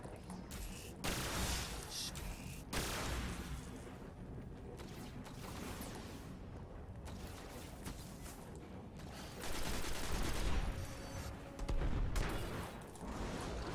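Gunfire bursts out loudly.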